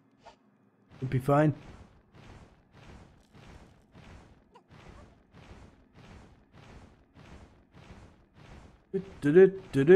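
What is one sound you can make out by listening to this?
Heavy footsteps tread steadily on snow.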